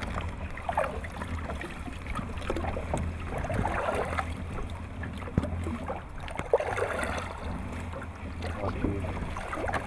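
A fishing net drags and rustles over the wooden side of a boat.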